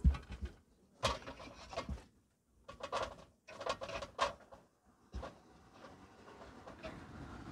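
A metal noodle strainer clanks against a pot.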